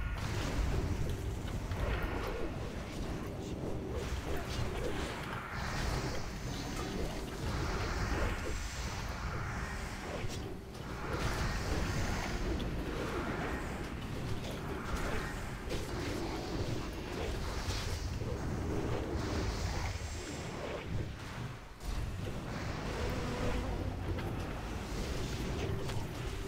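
Magic spells crackle and burst in a busy video game battle.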